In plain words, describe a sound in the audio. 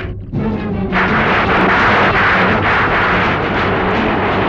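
Stormy sea waves roar and crash loudly.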